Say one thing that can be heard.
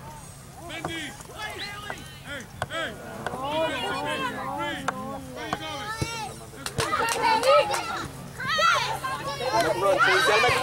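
Spectators close by shout and cheer with excitement.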